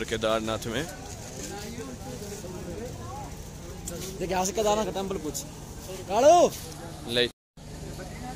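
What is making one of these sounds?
Men talk loudly nearby outdoors.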